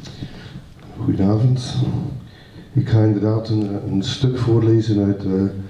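A man speaks calmly into a microphone in a hall with a slight echo.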